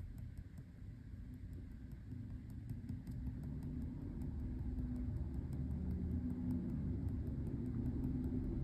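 A ballpoint pen scratches lightly on paper in quick short strokes.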